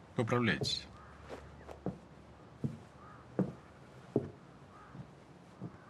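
Footsteps tap across a wooden floor.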